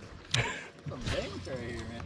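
A fishing reel clicks as its handle turns.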